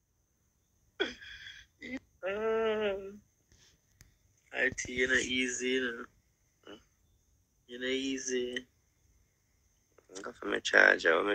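A young woman talks with animation over a phone call.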